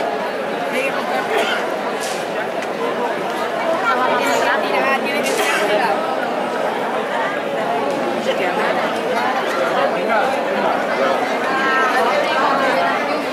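A crowd of people chatters all around outdoors.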